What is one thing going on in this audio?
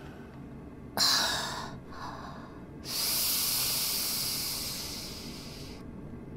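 A young woman sighs and breathes out through a microphone.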